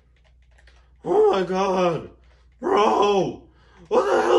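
A young man talks loudly and with animation, close by.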